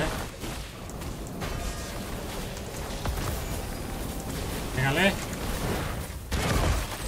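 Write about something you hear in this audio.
Heavy blows and magical blasts crash and boom repeatedly.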